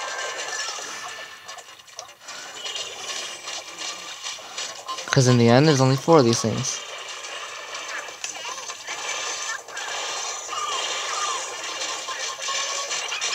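Video game music and effects play from a handheld console's small speaker.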